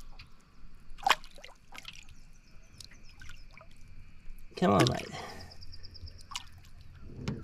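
A fish splashes and thrashes in shallow water close by.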